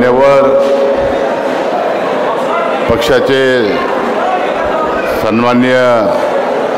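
A middle-aged man speaks forcefully into a microphone, heard through loudspeakers in a large echoing hall.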